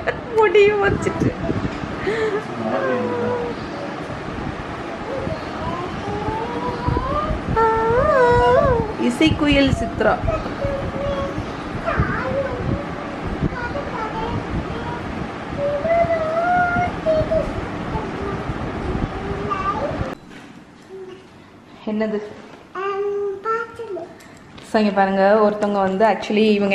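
A young girl talks and sings playfully close by.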